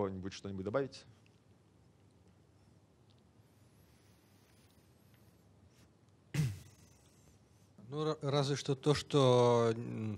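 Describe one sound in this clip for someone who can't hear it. A man speaks with pauses through a microphone.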